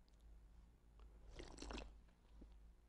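A man sips a hot drink.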